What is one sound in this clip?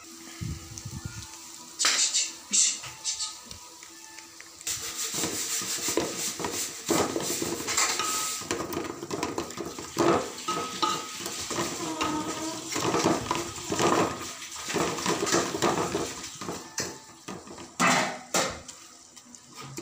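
Hands squelch and rustle while mixing food in a bowl.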